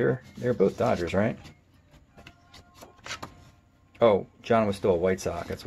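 Stiff paper cards rustle and slide against each other as they are handled.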